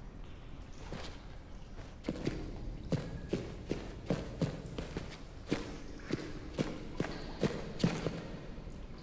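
Footsteps thud slowly on a stone floor in an echoing space.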